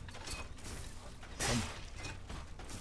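A fiery blast whooshes and crackles.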